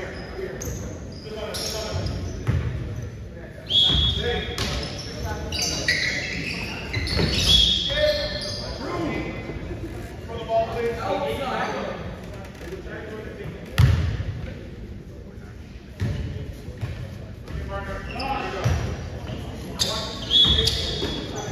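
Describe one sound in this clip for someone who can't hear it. Spectators talk and shout in a large echoing gym.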